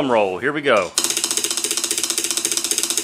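Wooden drumsticks tap rapidly on a metal plate.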